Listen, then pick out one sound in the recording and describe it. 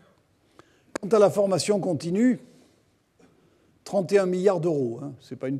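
A middle-aged man speaks calmly into a microphone in a hall with a slight echo.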